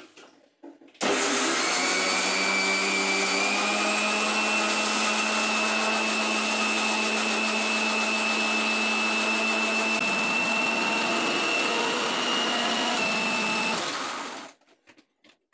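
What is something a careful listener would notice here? An electric mixer grinder whirs loudly and steadily.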